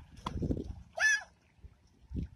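A young child squeals loudly.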